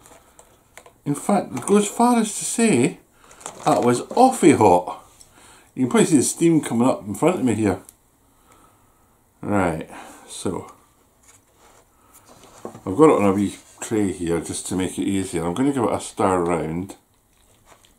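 A middle-aged man talks calmly, close to the microphone.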